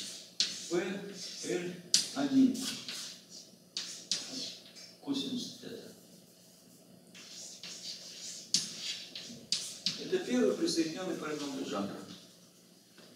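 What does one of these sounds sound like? An elderly man speaks calmly, as if lecturing, in a room.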